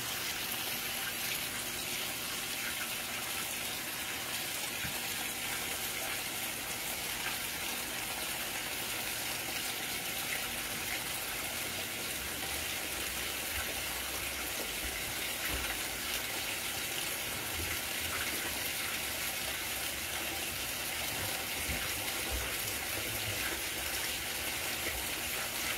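Water sloshes and churns in a washing machine drum.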